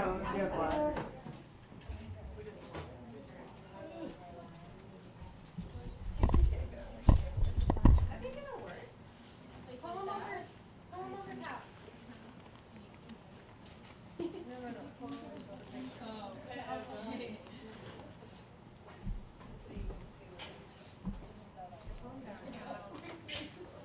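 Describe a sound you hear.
Teenagers chat quietly in the background of a room.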